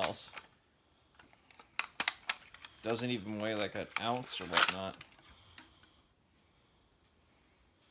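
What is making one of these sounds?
Plastic packaging crinkles as it is unwrapped.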